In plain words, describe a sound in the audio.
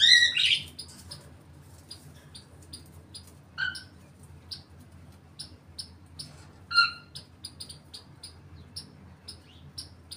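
A parrot's claws and beak click and scrape on a wire cage.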